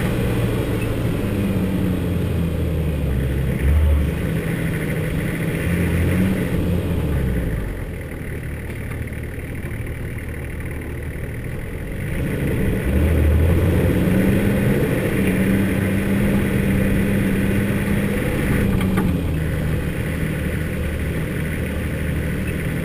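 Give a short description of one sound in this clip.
A vehicle engine hums and revs as it drives slowly along a rough track.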